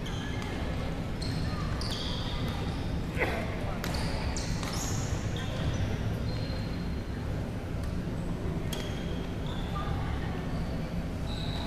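Shoes squeak sharply on a hard court floor in a large echoing hall.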